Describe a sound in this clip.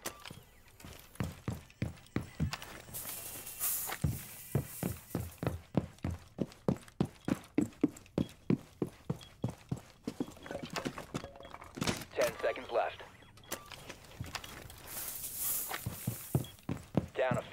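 Footsteps thud quickly and evenly on a wooden floor.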